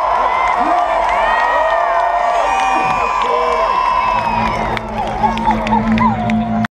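A huge crowd cheers, whistles and sings outdoors.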